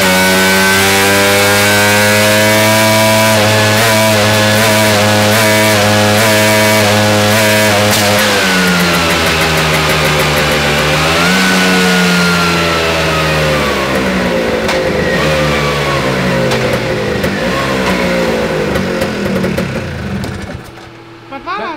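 A scooter engine revs loudly at high speed, then winds down.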